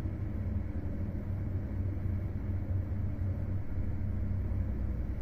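A vehicle rumbles steadily along the road, heard from inside.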